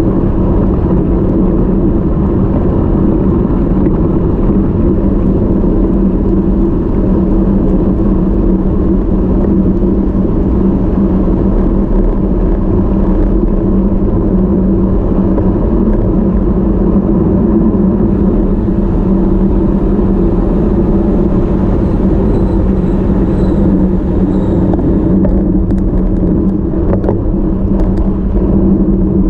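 Bicycle tyres hum on smooth tarmac.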